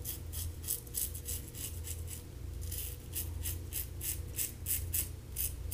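A razor scrapes through stubble in short, quick strokes close by.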